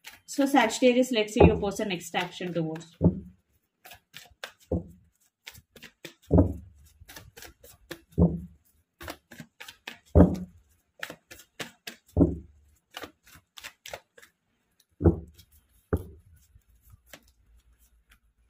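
Cards are shuffled in the hands with soft, quick taps and rustles.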